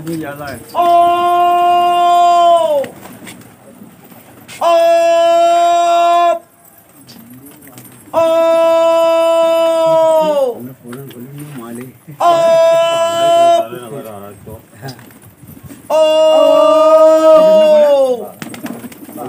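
Pigeons flap their wings as they take off and land.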